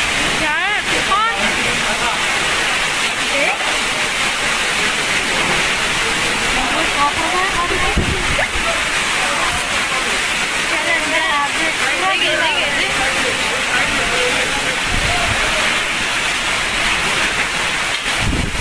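Heavy rain lashes down and hisses.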